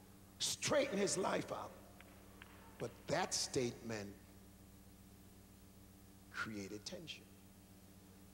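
A man preaches with animation into a microphone, heard through loudspeakers in a large echoing hall.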